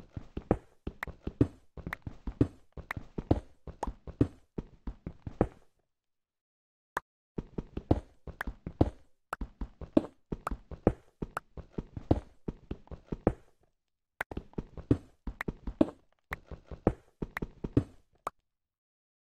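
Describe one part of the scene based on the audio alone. Stone blocks crack and break apart.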